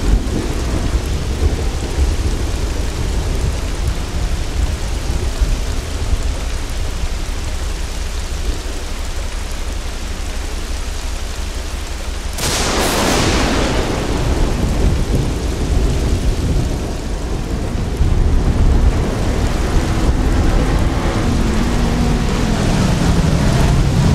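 Rain patters steadily all around.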